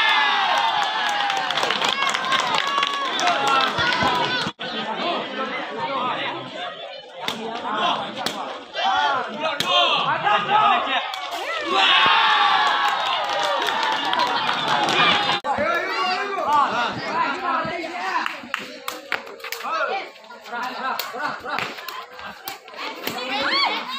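A ball is kicked with sharp thuds.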